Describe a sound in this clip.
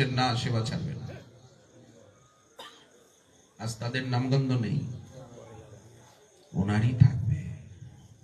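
A man speaks forcefully into a microphone in bursts, with pauses between them.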